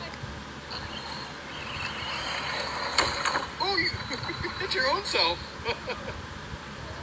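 A young boy shouts excitedly outdoors.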